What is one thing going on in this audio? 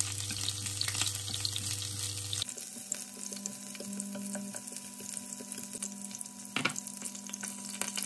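Chopsticks scrape and tap against a pan.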